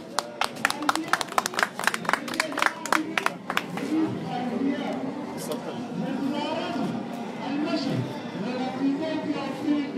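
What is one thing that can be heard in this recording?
A middle-aged man speaks into a microphone through a loudspeaker.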